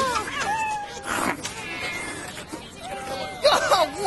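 A cat yowls loudly.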